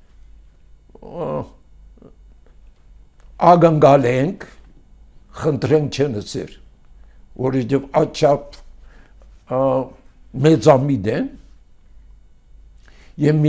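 An elderly man speaks slowly and deliberately into a microphone, with pauses between phrases.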